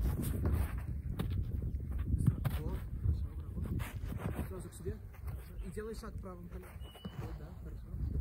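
A goalkeeper thuds onto the turf as he dives.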